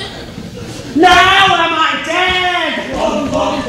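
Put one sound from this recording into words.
A man sings loudly and dramatically on a stage.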